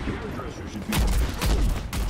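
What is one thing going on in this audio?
An explosion booms loudly close by.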